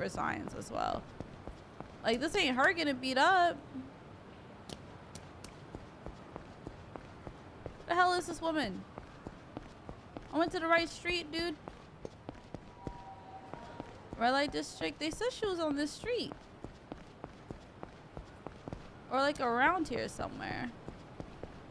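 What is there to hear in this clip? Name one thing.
A young woman talks with animation close to a microphone, in short bursts.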